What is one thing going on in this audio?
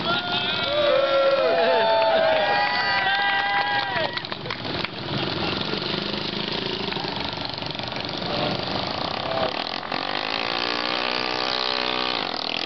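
A small motorbike engine revs loudly and buzzes.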